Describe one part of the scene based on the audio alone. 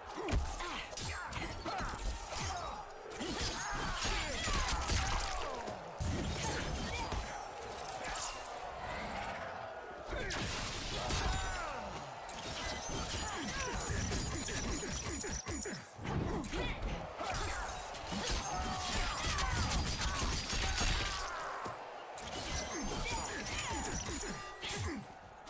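Blows and slashes land with heavy thuds and whooshes.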